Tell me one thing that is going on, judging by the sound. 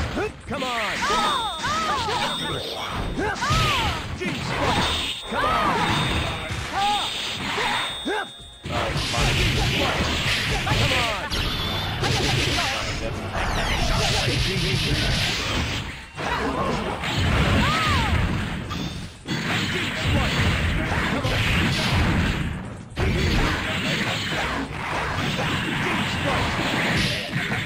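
Fighters clash with hits, blasts and crackling energy effects.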